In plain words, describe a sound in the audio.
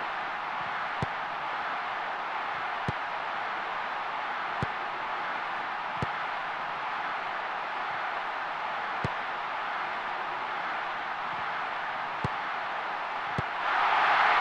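A football is kicked with sharp thumps now and then.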